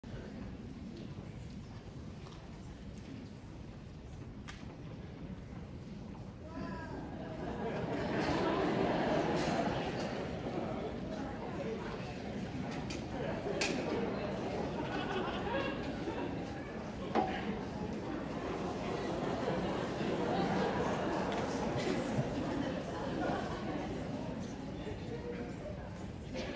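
A piano plays along with the choir.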